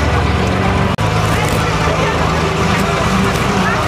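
A tractor engine rumbles as it drives past.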